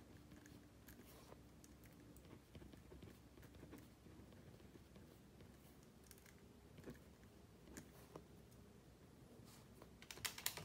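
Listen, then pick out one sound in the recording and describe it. Sheets of paper rustle as pages are turned.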